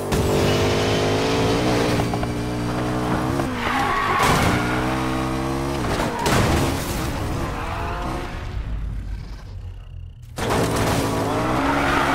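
A sports car engine roars at high speed and revs up and down.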